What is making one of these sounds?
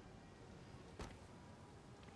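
A sharp thud of a blow lands once.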